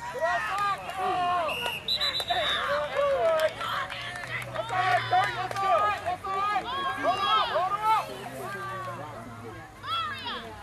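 Men and boys shout and call out loudly nearby, outdoors.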